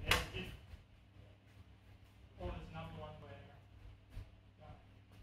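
Swords clash with sharp clacks in a large echoing hall.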